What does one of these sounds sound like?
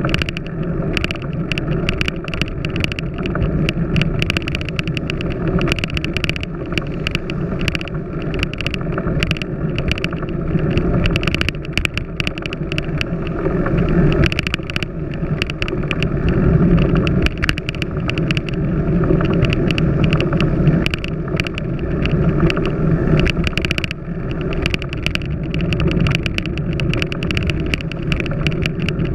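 Wind rushes past a moving bicycle.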